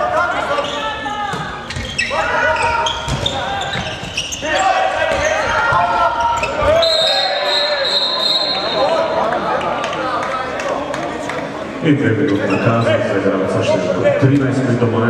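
A handball bounces on a wooden floor in a large echoing hall.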